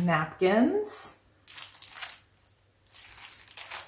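Plastic packaging crinkles in a woman's hands.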